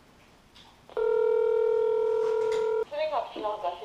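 A ringing tone sounds through a phone handset.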